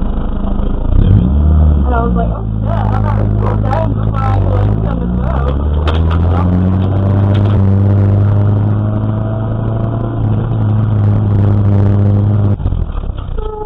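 A car engine roars and revs loudly from inside the car.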